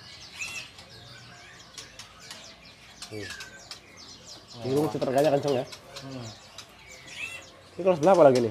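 Small birds chirp and whistle in short bursts.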